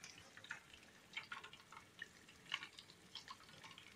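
Tongs set a piece of fried chicken down on paper towels with a soft rustle.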